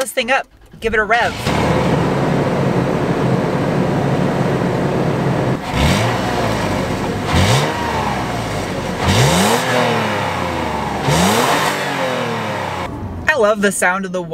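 A vehicle's exhaust rumbles steadily at idle outdoors.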